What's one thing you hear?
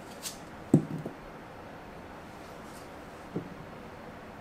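Apple pieces knock on a wooden board.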